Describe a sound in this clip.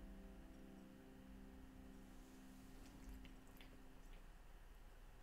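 A lever harp's plucked strings ring out and slowly fade.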